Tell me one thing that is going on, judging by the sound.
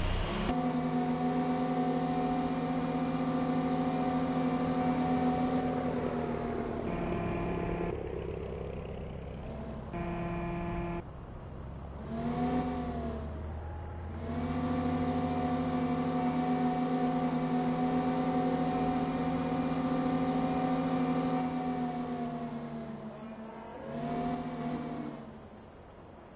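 A tractor engine hums steadily, rising and falling in pitch as it speeds up and slows down.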